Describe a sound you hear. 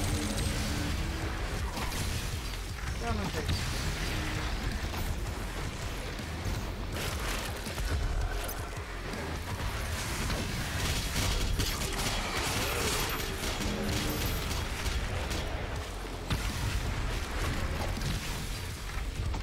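Heavy gunfire blasts again and again.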